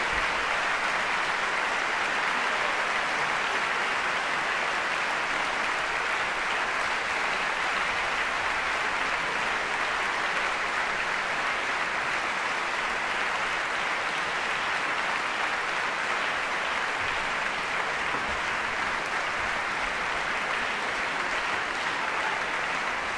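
A large audience claps steadily in a big hall.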